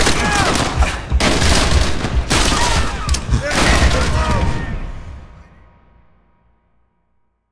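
Rapid gunfire rattles loudly, then fades away.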